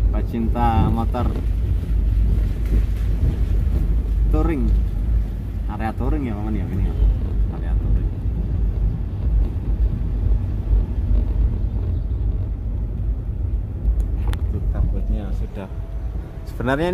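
A car drives along a road with a low, steady rumble.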